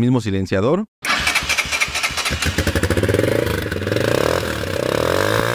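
A motorcycle engine idles with a fast, even rumble.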